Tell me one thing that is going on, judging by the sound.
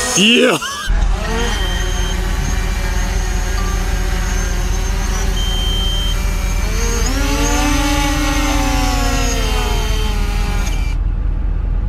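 A small drone's propellers whine and buzz close by.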